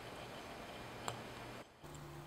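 A watch button clicks once.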